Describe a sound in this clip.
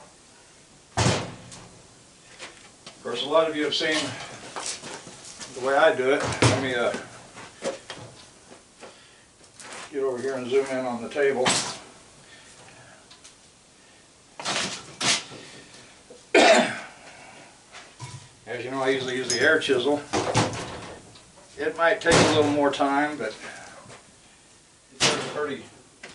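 Heavy metal parts clunk down on a metal table.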